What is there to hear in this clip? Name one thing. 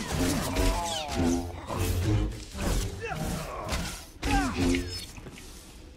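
Energy blades clash with sharp crackling hits in a fight.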